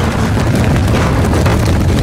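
An explosion roars.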